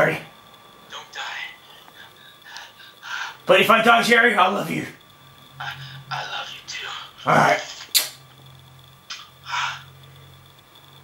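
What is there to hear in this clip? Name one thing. A young man's voice answers through a phone's speaker on a video call.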